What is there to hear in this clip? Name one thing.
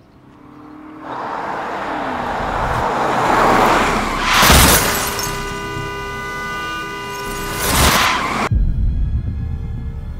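A pickup truck drives along a road.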